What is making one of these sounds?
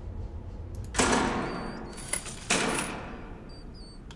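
A short game sound effect plays as an item is placed.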